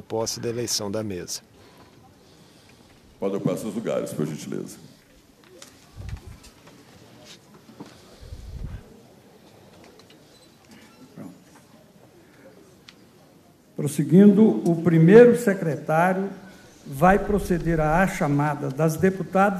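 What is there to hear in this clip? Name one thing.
A man speaks formally through a microphone in a large echoing hall.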